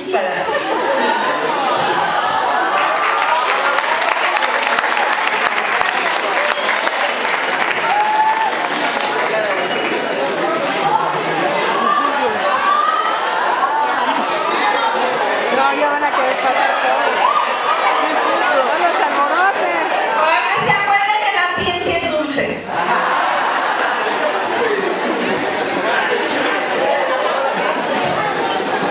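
A woman speaks into a microphone, heard through loudspeakers in a large hall.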